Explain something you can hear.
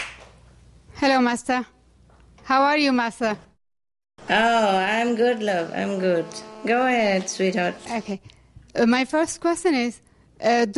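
A woman greets warmly into a microphone.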